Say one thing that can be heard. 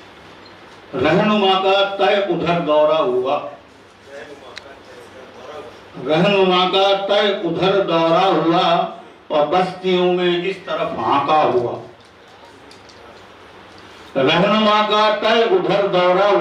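A middle-aged man speaks calmly into a microphone, heard through loudspeakers.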